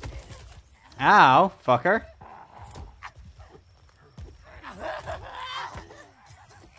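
A young man shouts in an animated, playful voice into a close microphone.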